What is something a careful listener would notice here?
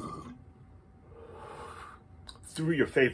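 A man exhales a long breath.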